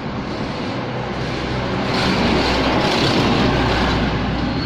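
A truck engine rumbles as it drives past close by.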